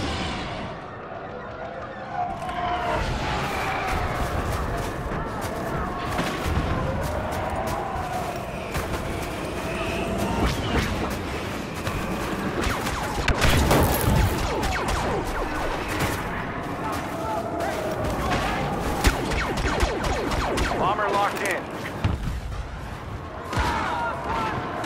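Blaster rifles fire laser bolts.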